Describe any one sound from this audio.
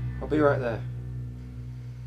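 A man speaks quietly into a phone.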